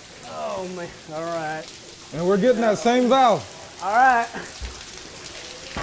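Water trickles from a pipe onto a wet floor.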